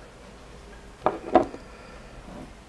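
A glass jar knocks against a wooden table.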